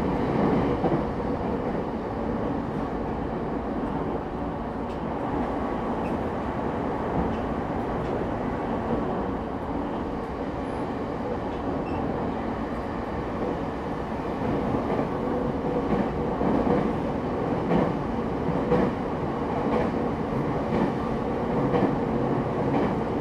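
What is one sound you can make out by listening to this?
An electric train hums steadily while standing in an echoing station.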